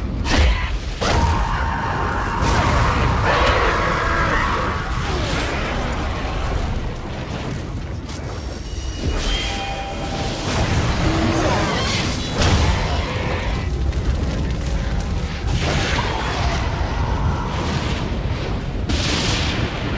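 Magic blasts crackle and burst.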